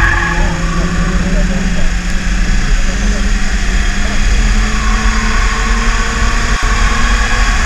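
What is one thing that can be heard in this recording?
Tyres hiss on a wet track.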